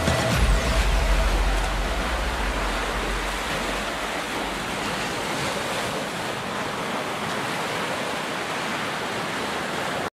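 Gentle waves wash onto a shore steadily.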